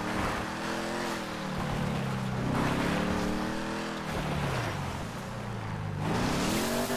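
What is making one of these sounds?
Tyres slide and crunch over snow.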